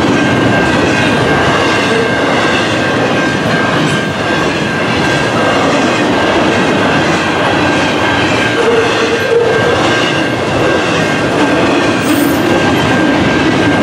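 Train wheels clatter and squeal on the rails.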